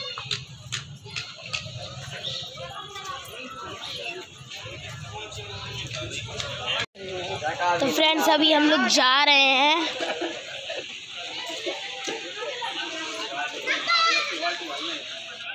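Men and women chatter in a busy outdoor street.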